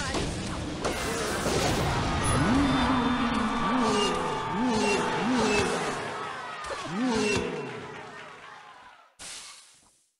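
Cartoonish battle effects of blows and small blasts clatter rapidly.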